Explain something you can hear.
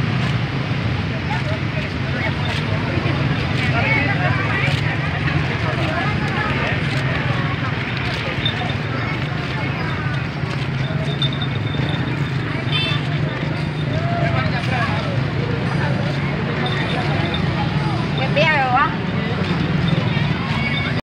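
Motorbike engines idle and putter nearby.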